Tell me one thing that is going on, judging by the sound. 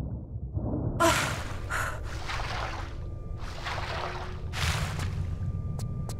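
Water splashes as a swimmer surfaces.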